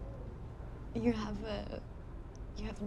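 A young man asks a question calmly nearby.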